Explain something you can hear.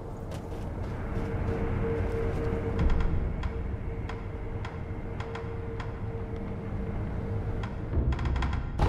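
A glowing shrine hums with a steady tone.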